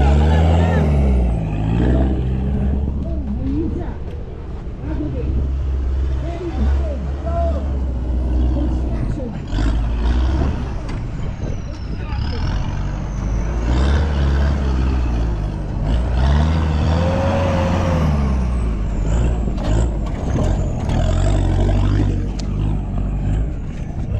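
An off-road truck engine revs hard and unevenly, rising and falling.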